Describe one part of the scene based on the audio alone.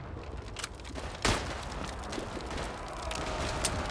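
A pistol is reloaded with metallic clicks.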